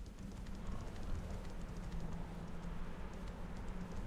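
Leaves rustle as something pushes through dense plants.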